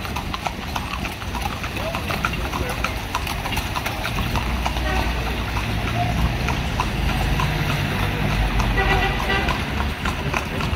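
Carriage wheels rattle over a street.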